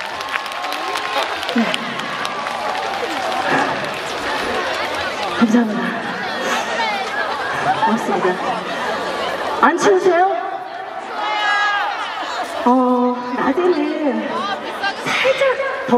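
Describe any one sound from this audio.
A young woman sings through a microphone over loudspeakers.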